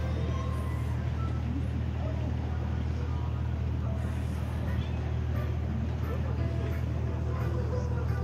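Water splashes gently against a boat's hull.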